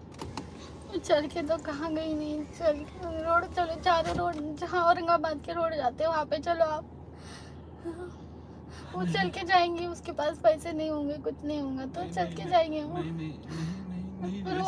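A woman sings loudly with strained emotion close by.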